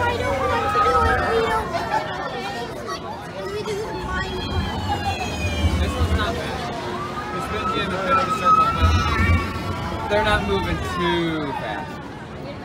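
Young riders on a swinging fairground ride scream and shout excitedly nearby.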